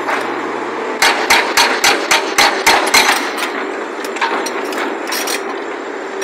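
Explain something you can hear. A hydraulic breaker hammers rapidly on rock.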